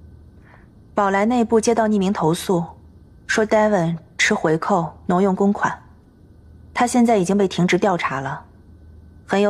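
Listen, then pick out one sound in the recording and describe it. A woman speaks calmly and firmly nearby.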